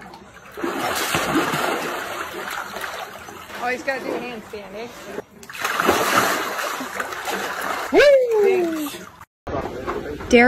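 Water splashes and churns as a man moves about in a pool.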